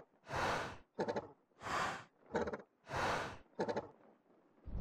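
Large wings flap with whooshing beats.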